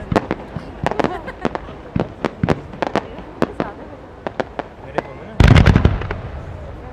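Fireworks crackle and pop in quick bursts.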